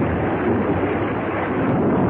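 Water splashes and gushes from an overflowing barrel.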